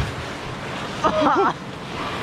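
A young girl speaks with excitement close by.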